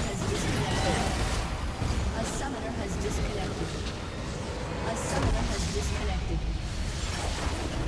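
Video game spells crackle and blast in a busy fight.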